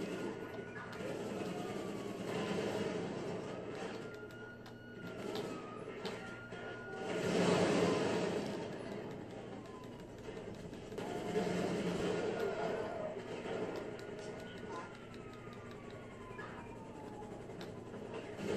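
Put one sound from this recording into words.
A police siren wails and rises and falls.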